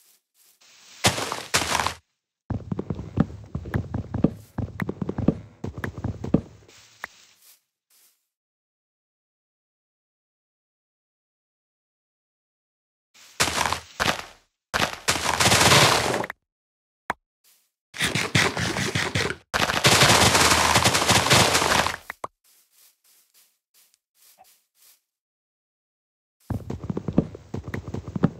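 An axe chops rhythmically at wood.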